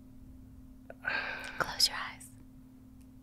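A young woman speaks softly and breathily close to a microphone.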